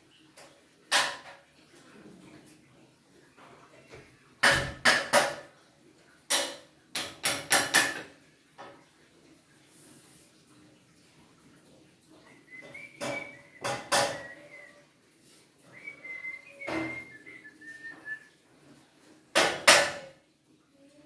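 A hammer knocks sharply on wood in bursts of quick blows.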